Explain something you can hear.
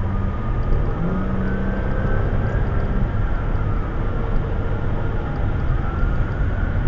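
Tyres roar steadily on a highway from inside a moving car.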